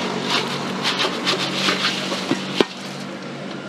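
Crispy fried strips tumble and rustle onto a metal rack.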